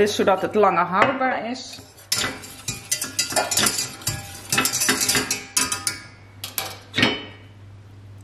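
A whisk clinks and scrapes against a metal pot.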